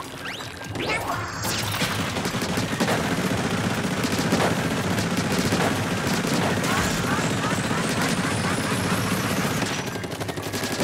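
A video game's heavy special weapon roars in a long, loud blast.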